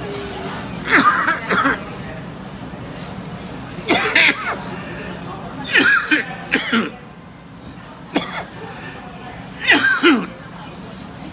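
A man coughs several times.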